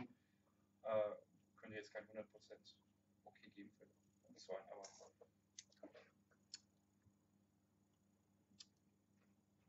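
A man sips and slurps wine loudly.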